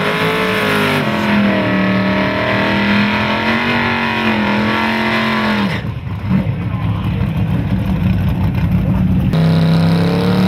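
Car tyres spin and screech.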